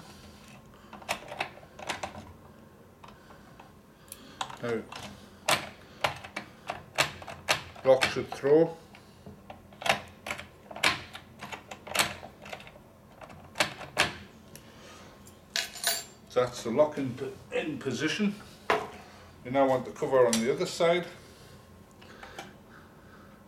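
Metal parts of a lock click and tap as they are handled.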